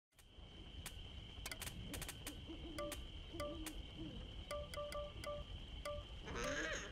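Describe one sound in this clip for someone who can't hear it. Short menu clicks and beeps sound again and again.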